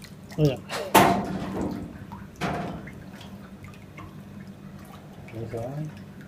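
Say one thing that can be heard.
Water drips and trickles as an object is lifted out.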